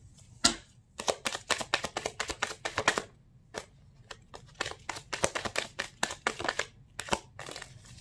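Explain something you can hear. Playing cards riffle and flutter as they are shuffled by hand.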